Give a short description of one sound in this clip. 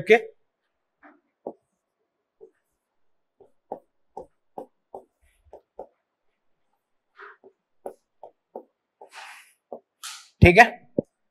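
A marker taps and squeaks on a board.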